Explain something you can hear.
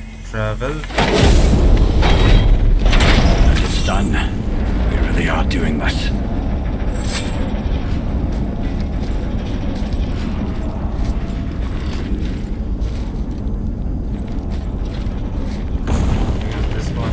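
A deep magical roar swells up and then settles into a low rumble.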